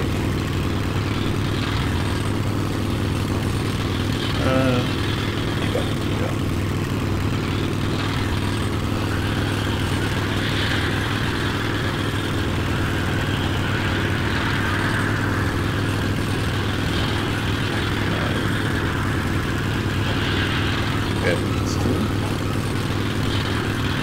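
A rail cart rumbles steadily along tracks.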